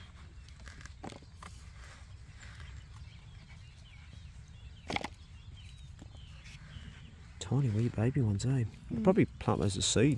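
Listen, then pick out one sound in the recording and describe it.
A hand fork scrapes and rakes through loose soil.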